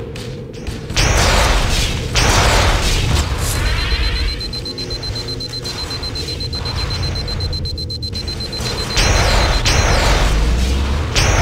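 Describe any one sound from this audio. A plasma grenade explodes with a loud burst.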